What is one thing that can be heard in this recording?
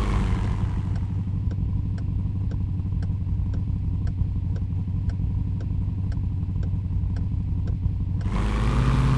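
A turn signal ticks evenly.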